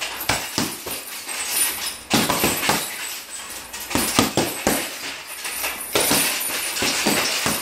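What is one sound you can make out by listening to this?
A chain rattles and creaks as a punching bag swings.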